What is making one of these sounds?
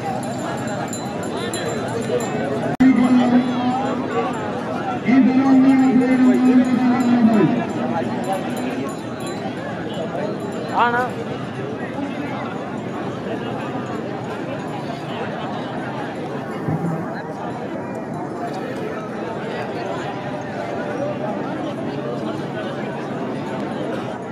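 A large outdoor crowd chatters in a steady murmur.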